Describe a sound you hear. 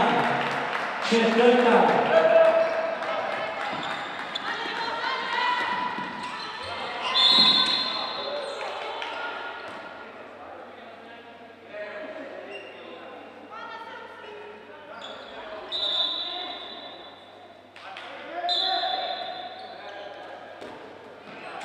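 A ball bounces on a hard floor.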